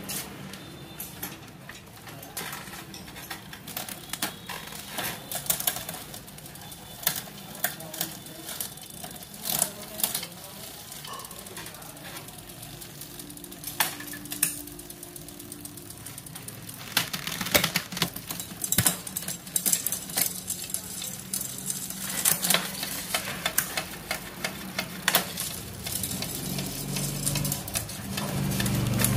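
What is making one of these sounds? Bicycle parts clink and rattle as they are handled.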